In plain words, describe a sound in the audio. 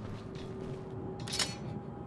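A chain-link gate rattles open.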